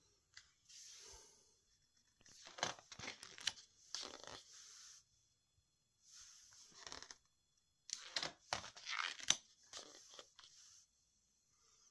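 Book pages rustle and flap as they are turned.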